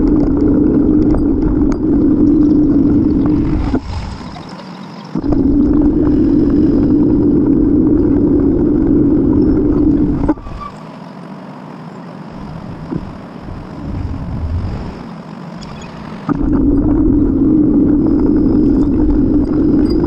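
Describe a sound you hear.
Wind rumbles loudly against the microphone, dropping away at times.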